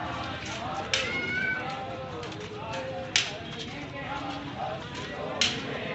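A crowd of men talk and call out outdoors.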